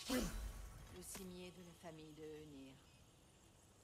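A woman's voice speaks calmly in the game.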